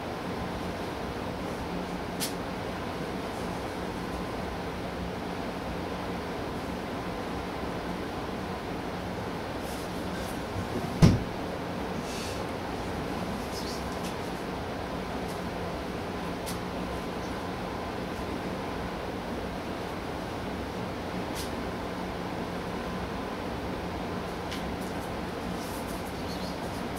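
A paper tissue rustles softly as it is waved about.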